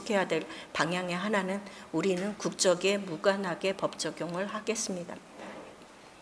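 A middle-aged woman speaks calmly into a microphone in a large hall.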